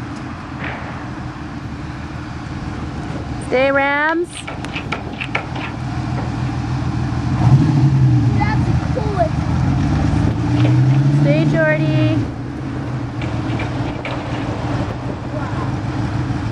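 A sports car engine rumbles at low revs, swelling louder now and then.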